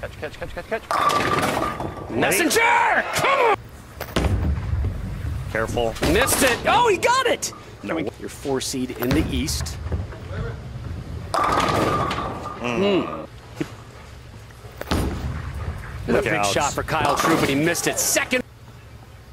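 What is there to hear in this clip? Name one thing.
Bowling pins crash and clatter as a ball strikes them.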